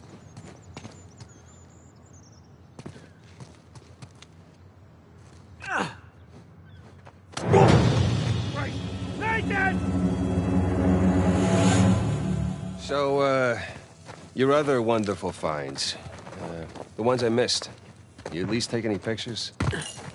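Footsteps scuff on stone and dirt.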